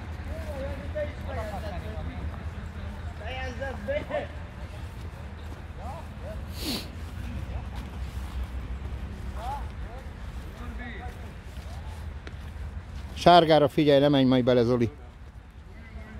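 Horses' hooves thud softly on damp dirt.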